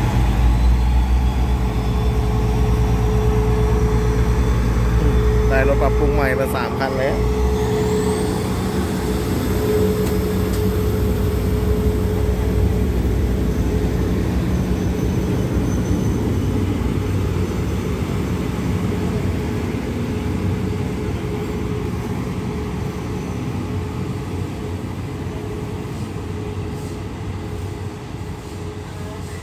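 A train rumbles and clatters as it pulls away and slowly fades.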